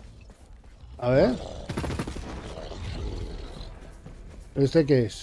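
A large creature roars and growls loudly.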